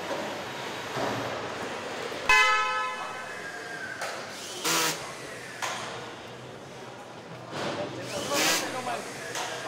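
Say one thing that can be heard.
Machinery hums steadily in a large echoing hall.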